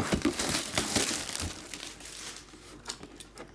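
Plastic wrap crinkles.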